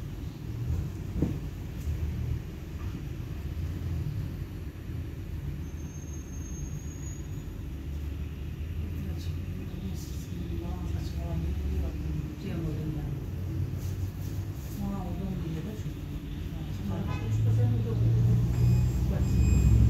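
Car tyres hiss on a wet road as cars pass by.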